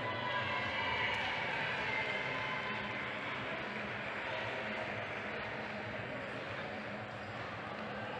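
Wheelchair wheels squeak and roll across a hard floor.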